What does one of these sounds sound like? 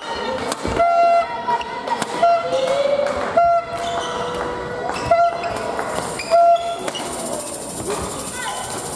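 Sports shoes squeak on the hall floor.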